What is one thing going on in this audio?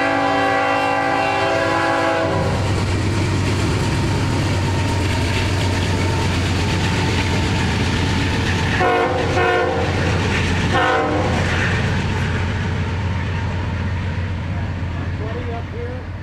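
Diesel locomotive engines rumble heavily as they pass.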